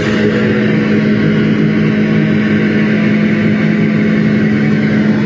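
A drum kit is played loudly.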